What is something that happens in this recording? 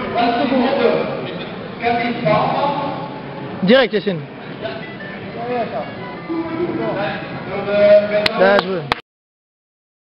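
Men talk in a large echoing hall.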